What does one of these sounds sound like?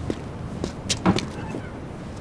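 A wooden door opens with a click.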